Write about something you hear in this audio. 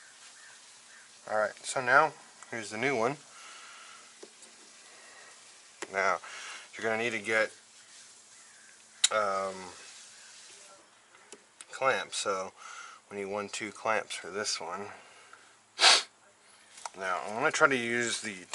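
Plastic hoses and connectors rattle and click as hands pull at them.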